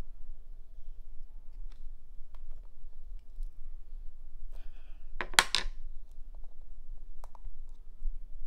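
Cockle shells click and clack against each other.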